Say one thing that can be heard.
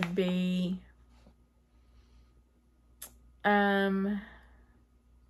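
A woman speaks close by in short, drawn-out phrases.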